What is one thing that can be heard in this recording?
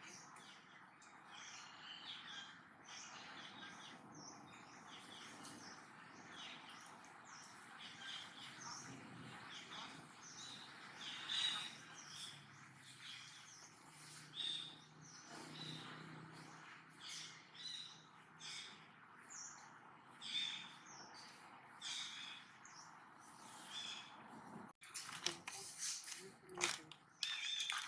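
A monkey softly rustles through another monkey's fur.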